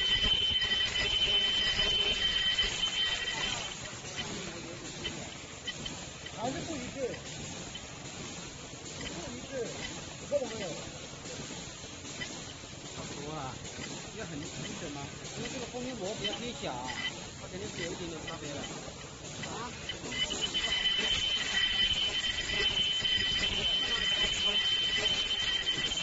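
An automatic mask-making machine runs with a high steady whine and clatter.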